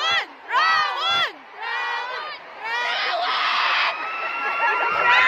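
A crowd of young women screams and shrieks loudly all around.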